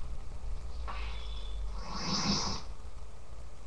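Video game sound effects burst from a television speaker.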